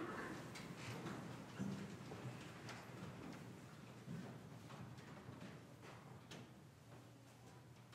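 Footsteps echo softly in a large, reverberant hall.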